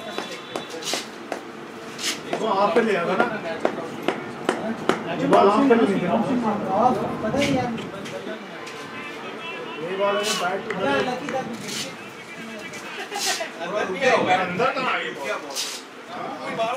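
A cricket bat knocks a ball in the distance.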